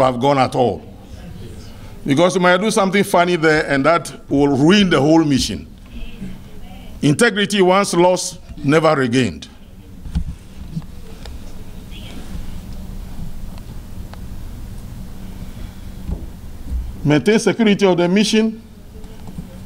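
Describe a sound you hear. A middle-aged man speaks slowly and formally into a microphone, with long pauses.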